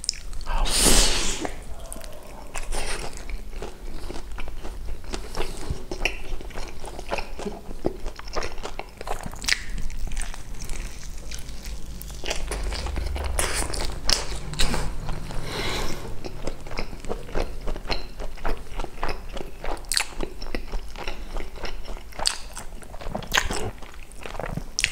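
A man chews food wetly and smacks his lips, close to a microphone.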